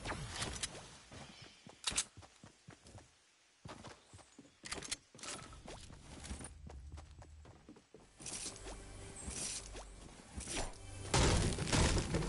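Footsteps thud and clatter on wooden boards.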